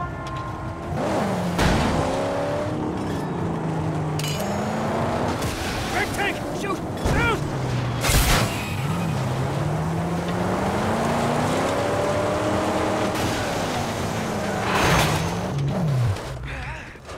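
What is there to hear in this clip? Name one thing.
A car engine roars loudly, revving up and down.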